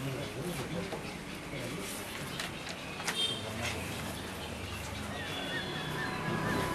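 Paper pages rustle as a file is leafed through.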